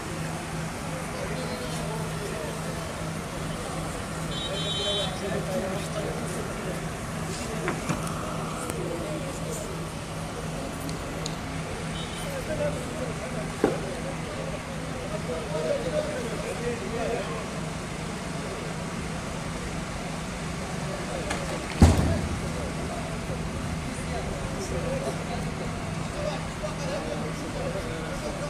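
A fire engine's pump hums steadily nearby.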